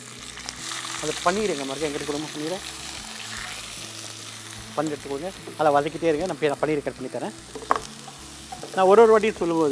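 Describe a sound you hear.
A spatula scrapes and stirs in a pan.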